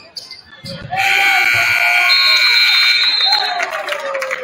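A loud horn blares steadily in a large echoing gym.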